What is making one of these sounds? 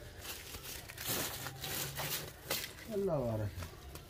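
A rope rustles and scrapes against sacks as it is pulled tight.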